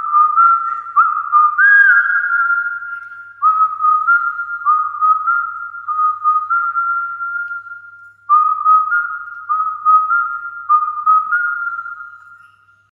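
A man whistles a melody close to a microphone.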